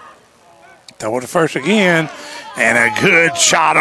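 Young men shout and cheer loudly outdoors.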